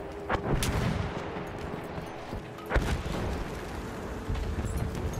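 Explosions boom nearby with deep rumbling.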